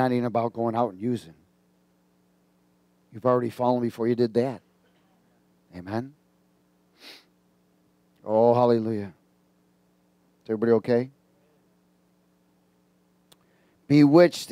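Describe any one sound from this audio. A middle-aged man speaks with animation through a headset microphone, pausing often.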